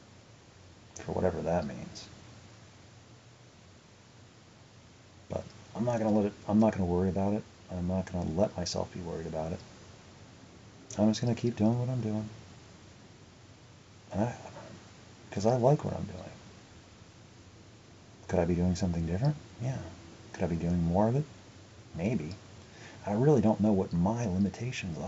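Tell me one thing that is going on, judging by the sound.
A young man speaks close to the microphone in short bursts with pauses.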